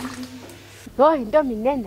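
A young woman speaks loudly and with animation close by.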